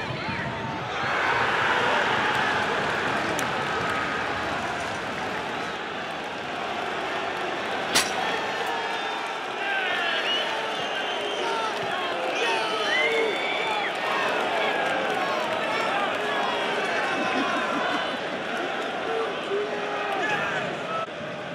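A large crowd cheers and roars loudly outdoors.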